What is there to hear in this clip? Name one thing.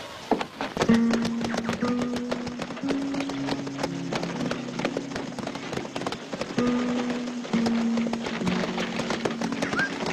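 Horses' hooves clatter on the ground.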